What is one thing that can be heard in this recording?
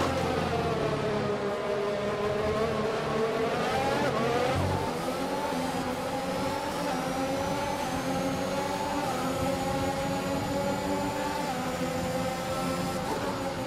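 Several racing car engines drone nearby.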